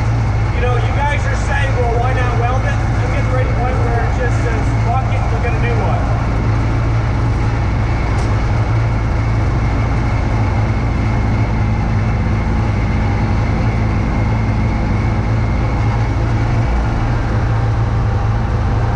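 A snowblower engine drones steadily up close.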